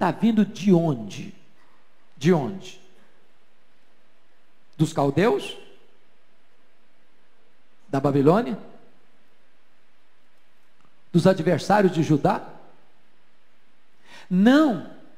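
A middle-aged man speaks into a microphone in short bursts with long pauses, heard over a loudspeaker.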